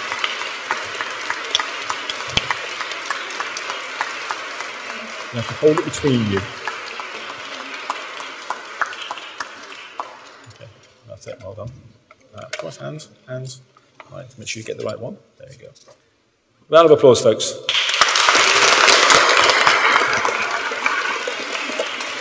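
An audience claps and applauds in a large echoing hall.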